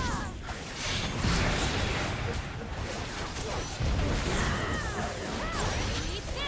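Magic blasts, whooshes and hits crackle in a busy fantasy battle.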